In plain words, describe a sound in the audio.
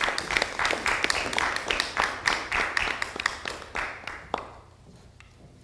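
An audience applauds loudly in a hall, then the clapping dies away.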